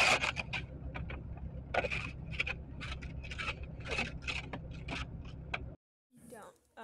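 A brush scrapes ice and snow off a car windshield in quick strokes.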